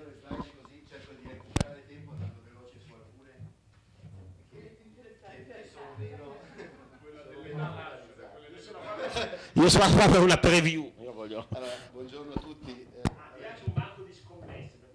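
Several men and women talk quietly in a room.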